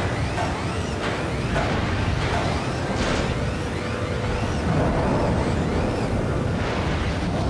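A game vehicle's engine rumbles steadily.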